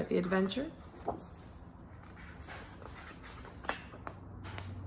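Book pages rustle as they turn.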